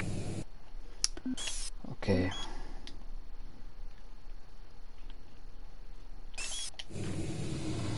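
Short electronic beeps sound as a game menu opens and is used.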